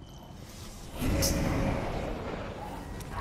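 A game menu opens with a loud whooshing chime.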